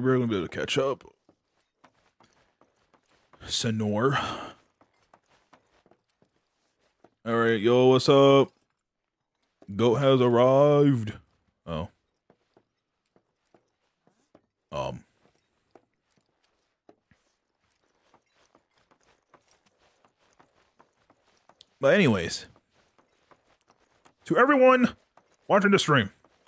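A young man talks in short bursts close to a microphone, with animation.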